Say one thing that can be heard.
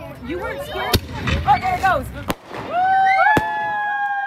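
Fireworks bang loudly overhead.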